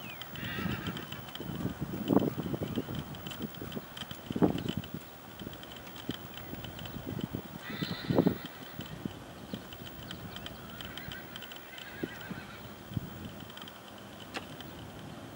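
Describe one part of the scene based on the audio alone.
A horse trots with muffled hoofbeats on soft sand.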